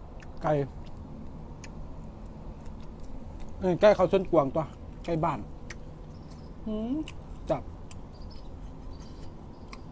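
Crisp fried food crunches and tears in a young man's hands.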